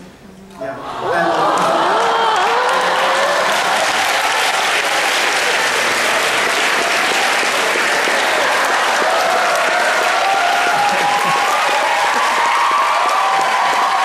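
A crowd of young people laughs and cheers loudly.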